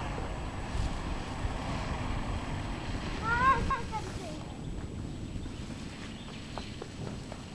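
A small propeller plane's engine drones as the plane flies low past.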